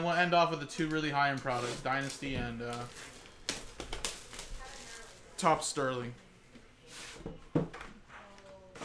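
A cardboard box slides and scrapes as hands handle it.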